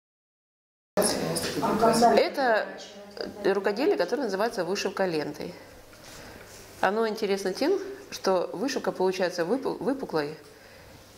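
A middle-aged woman speaks calmly and closely into a microphone.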